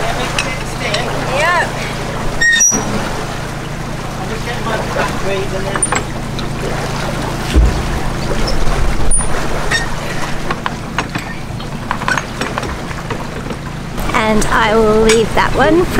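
Water churns and gushes out through a sluice.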